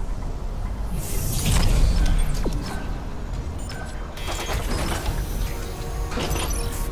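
A heavy metal door slides open with a loud hiss.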